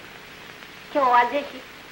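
A woman speaks softly.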